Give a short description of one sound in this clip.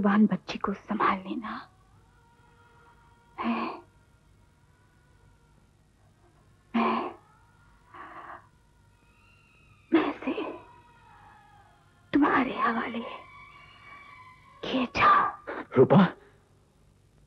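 A woman speaks in distress, close by.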